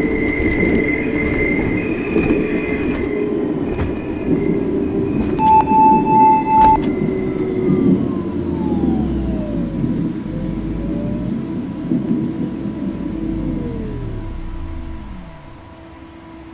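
An electric train hums and rattles along, then whines down as it brakes to a stop.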